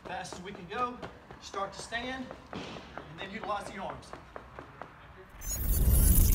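A man's feet land with soft thuds on a padded floor.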